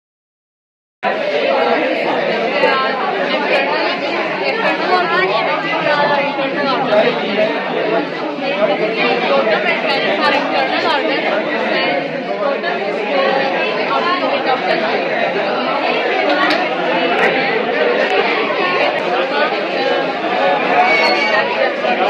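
A young woman speaks calmly, explaining close by.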